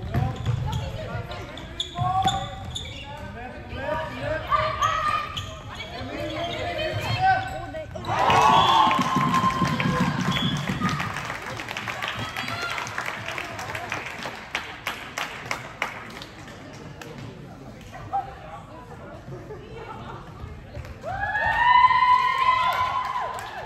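Young women shout and call out to each other in a large echoing hall.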